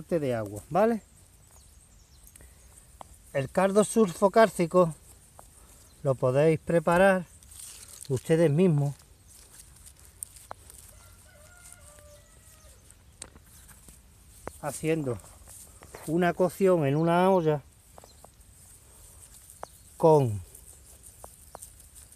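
A gloved hand scrapes and digs into loose dry soil.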